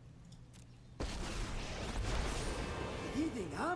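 A magical burst whooshes and rumbles.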